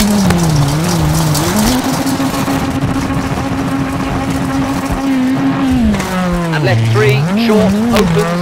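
A rally car engine roars, its pitch rising and falling as it shifts gears.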